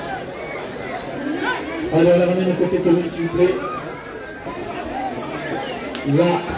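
A large crowd chatters and calls out in an open arena.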